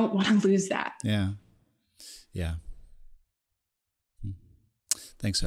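A young man speaks into a microphone with short replies.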